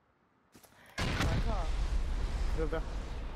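An explosion booms, then rumbles on.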